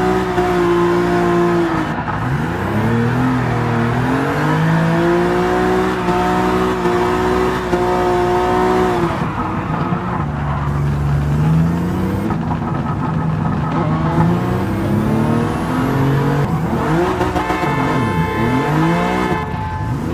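A car engine revs loudly, rising and dropping in pitch as it shifts gears.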